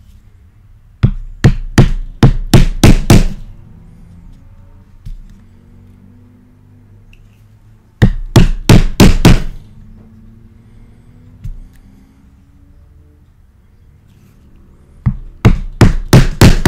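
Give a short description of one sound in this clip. A mallet strikes a metal stamping tool in short bursts of sharp, ringing knocks.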